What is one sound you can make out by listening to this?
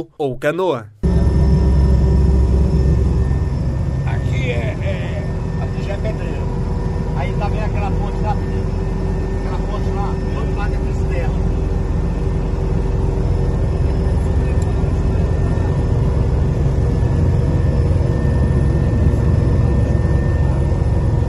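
A helicopter engine drones steadily inside the cabin.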